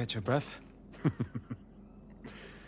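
A man chuckles softly.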